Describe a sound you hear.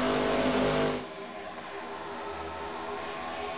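Several race car engines drone steadily at a distance.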